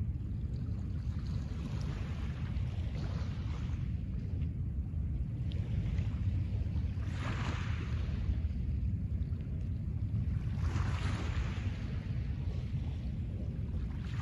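Wind rumbles steadily across the open shore.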